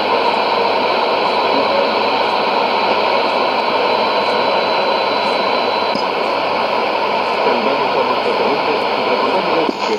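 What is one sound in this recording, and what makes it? A shortwave radio hisses and crackles with loud static.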